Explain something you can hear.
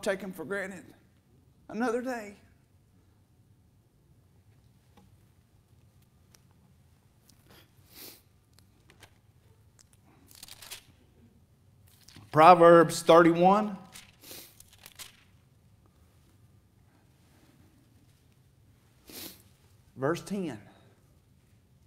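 A middle-aged man speaks through a microphone in pauses, with a slight echo.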